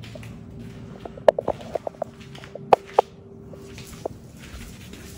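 A lizard's claws click and scrape on a tile floor.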